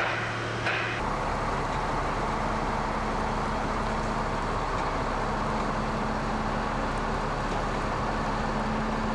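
Heavy tyres roll slowly over gravel.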